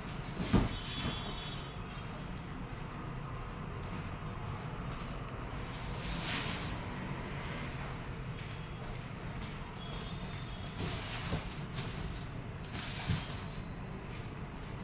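Cardboard boxes thud as they are set down and stacked.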